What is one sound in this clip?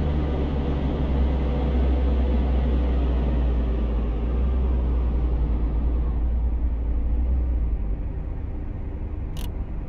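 A car engine hums steadily and quiets as the car slows to a stop.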